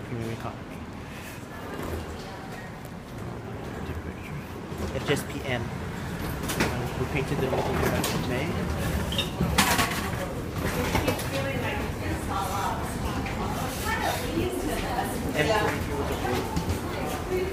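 Footsteps shuffle along a hard floor.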